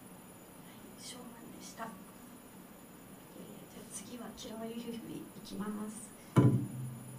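A young woman speaks softly into a microphone.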